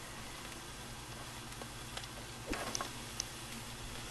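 Oil sizzles softly in a deep fryer.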